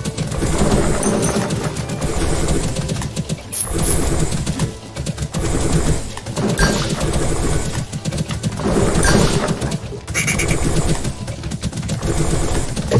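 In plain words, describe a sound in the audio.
A man speaks steadily and with animation, close to a microphone.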